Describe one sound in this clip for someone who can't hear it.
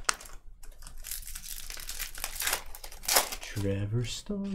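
A foil card pack crinkles and tears open.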